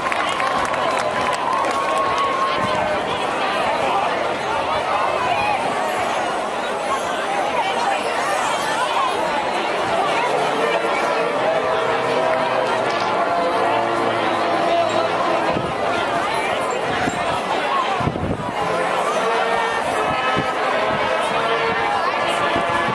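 A marching band plays brass and woodwind music outdoors.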